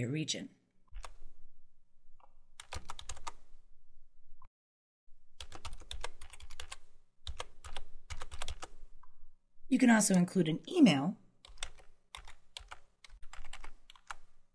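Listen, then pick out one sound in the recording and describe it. Keys on a computer keyboard click in quick bursts of typing.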